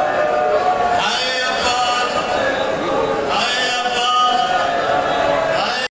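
A large crowd of men chants loudly together in a big echoing space.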